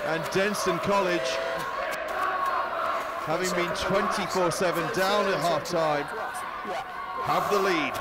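Young men shout to each other on a sports field.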